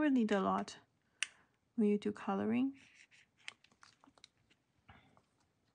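A plastic cup clicks softly as it is handled.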